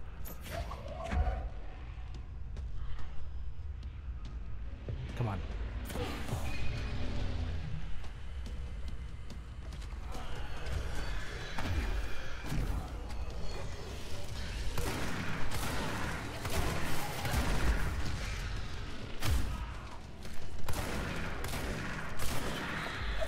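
Heavy blasts boom and rumble.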